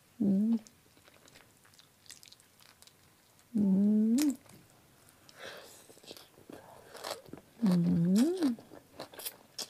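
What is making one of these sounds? A young woman chews wetly close to a microphone.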